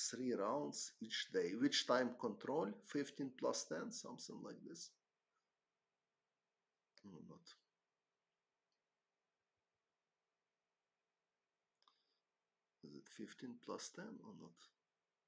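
A man talks calmly and closely into a microphone, with pauses.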